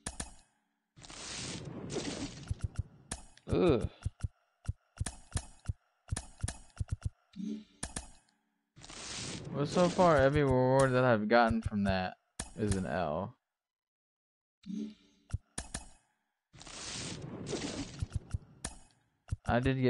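Cards flip over with quick swishing whooshes and soft clicks.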